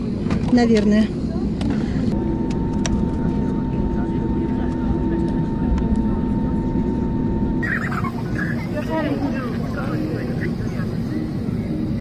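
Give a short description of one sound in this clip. Jet engines hum steadily from inside an aircraft cabin.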